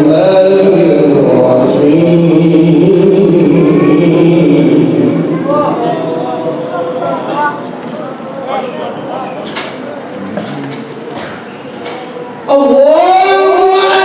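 A man chants in a loud, sustained voice through a microphone and loudspeakers.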